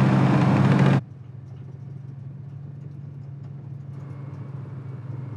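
A tank engine hums low and muffled.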